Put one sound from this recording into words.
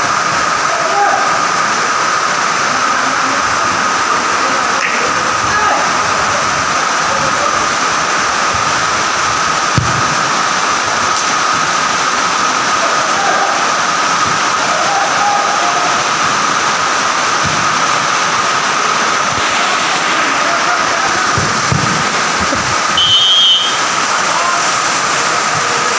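Young men's voices call out faintly across a large echoing hall.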